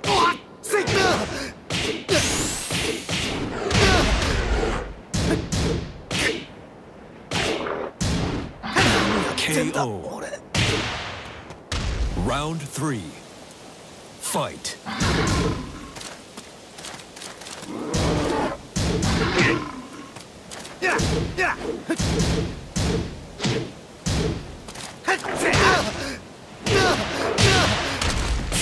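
Punches and kicks land with sharp, heavy thuds in quick bursts.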